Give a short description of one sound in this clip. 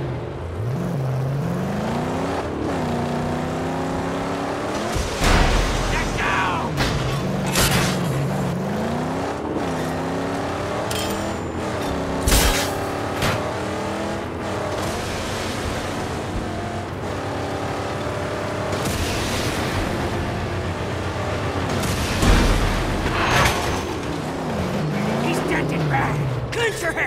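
A car engine roars and revs up and down throughout.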